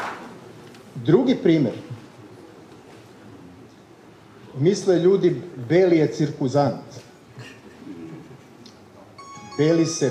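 A man speaks calmly through a microphone over loudspeakers, in pauses.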